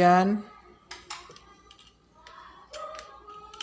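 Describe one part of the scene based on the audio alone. A plug clicks into a small socket.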